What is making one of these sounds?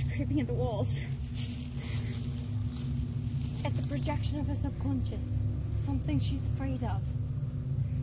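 A young woman speaks tensely nearby.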